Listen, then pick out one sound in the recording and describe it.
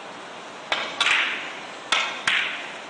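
Billiard balls knock together and roll across a table.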